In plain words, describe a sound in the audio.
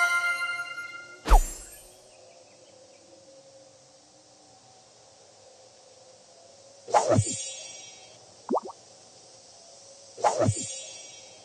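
Game chimes and whooshing effects sound in short bursts.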